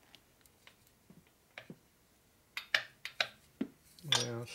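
Metal parts click and tap as hands handle them.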